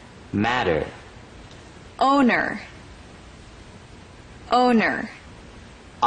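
A young woman speaks single words clearly into a microphone, with pauses between them.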